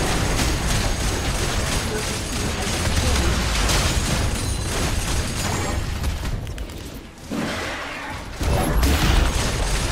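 Game spell effects and explosions crash and boom in quick bursts.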